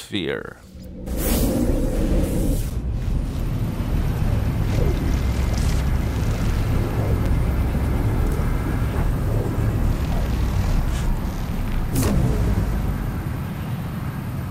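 A deep, rushing roar swells and surges, then fades away.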